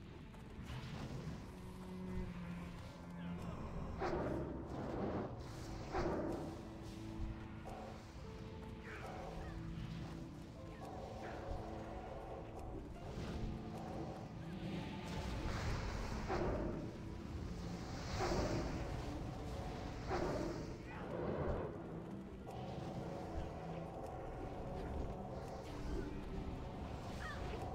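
Spells burst and whoosh again and again in a game battle.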